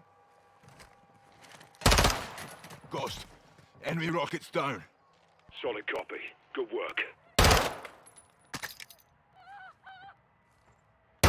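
Gunshots fire in loud bursts, echoing between close walls.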